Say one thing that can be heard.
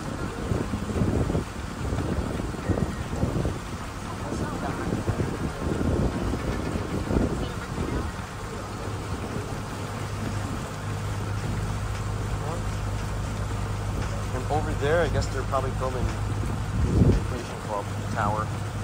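Wind blows outdoors, rumbling past the microphone.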